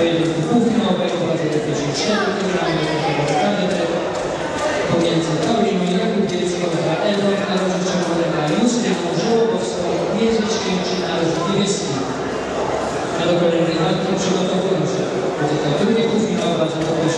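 A crowd of spectators chatters in a large echoing sports hall.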